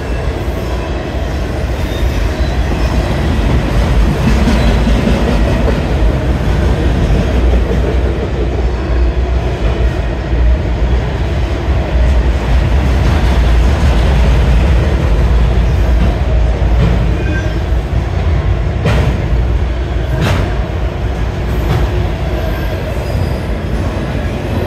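A railway crossing bell rings steadily.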